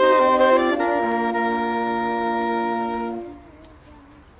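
A group of saxophones plays a held chord outdoors, then stops.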